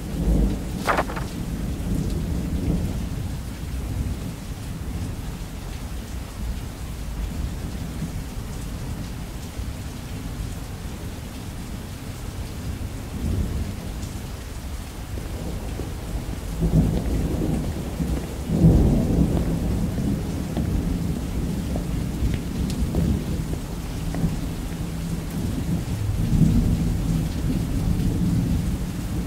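Rain patters steadily against a window.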